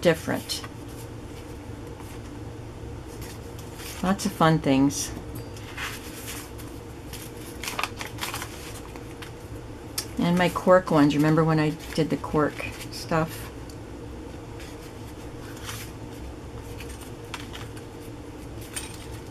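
Paper cards rustle and slide against each other as they are handled.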